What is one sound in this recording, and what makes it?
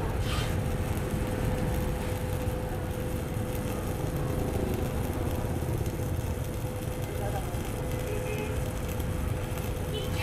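A welding machine hums.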